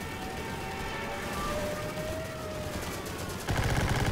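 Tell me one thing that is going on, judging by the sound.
A propeller plane drones overhead and passes.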